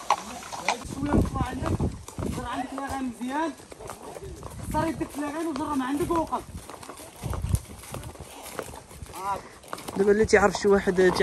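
A child talks nearby.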